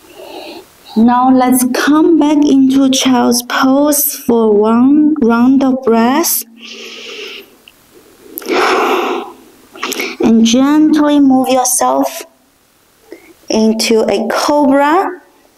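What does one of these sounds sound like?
A young woman speaks calmly and softly close to a microphone.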